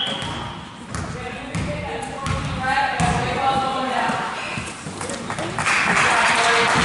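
Children shout and cheer in a large echoing gym.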